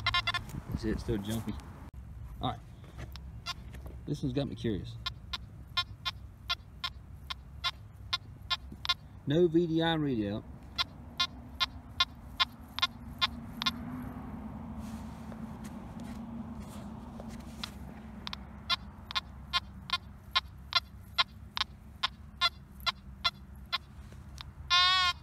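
A metal detector gives out quick repeated clicks.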